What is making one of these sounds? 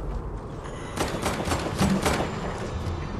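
Wooden panels snap into place with quick clatters.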